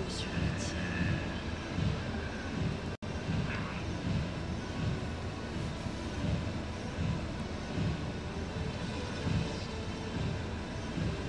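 A man talks casually into a close microphone.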